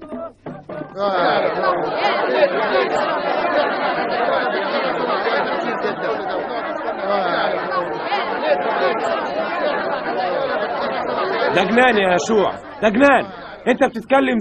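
A large crowd of men and women talks and murmurs outdoors.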